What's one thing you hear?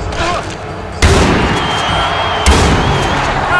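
A rifle fires two loud shots.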